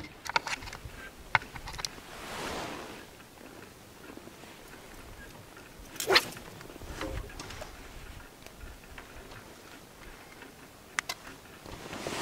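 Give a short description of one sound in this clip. Fishing line and small tackle rustle and click in close hands.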